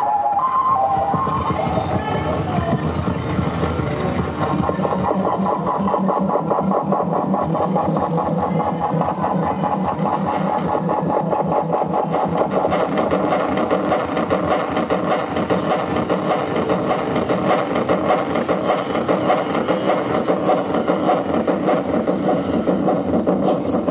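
Electronic music with a fast pulsing beat plays loudly through speakers.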